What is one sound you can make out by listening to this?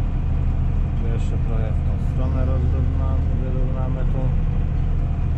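A man speaks calmly close by over the engine.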